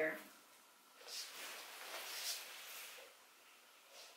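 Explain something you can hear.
Tulle rustles as a veil is handled.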